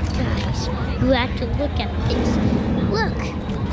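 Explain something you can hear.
A young child speaks excitedly close by.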